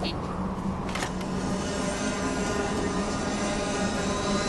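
A hovering speeder's engine hums steadily.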